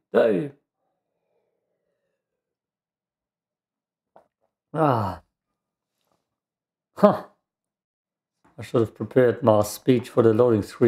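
A young man talks animatedly into a close microphone, in short bursts.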